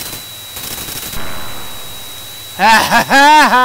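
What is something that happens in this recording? An explosion booms and then dies away.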